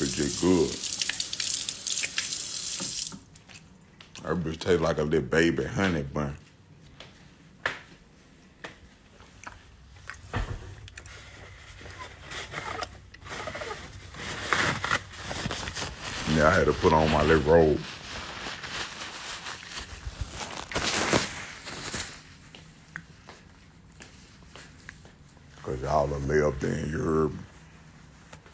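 A man talks with animation close to a phone microphone.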